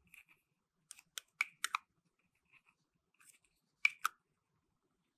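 Plastic cups click and tap against each other.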